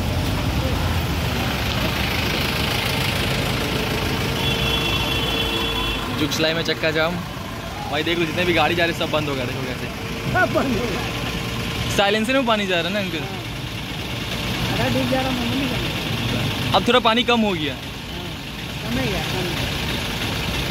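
Motorcycle engines idle in heavy traffic.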